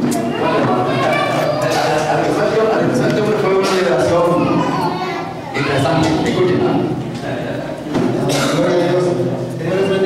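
A man answers briefly through a microphone.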